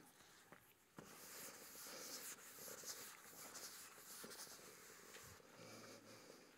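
An eraser wipes across a chalkboard.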